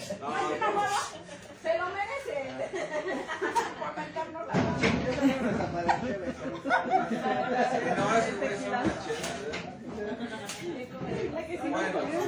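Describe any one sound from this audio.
An elderly woman talks close by.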